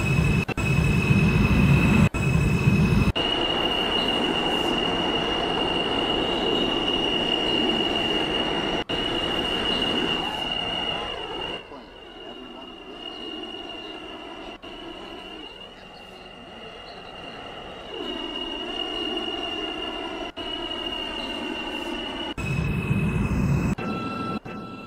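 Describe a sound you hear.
A subway train motor whines steadily as the train speeds along the track.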